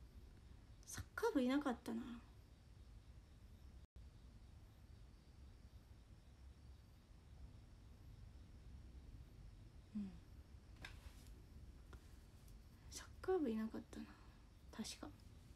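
A young woman speaks softly and casually, close to a microphone, with pauses.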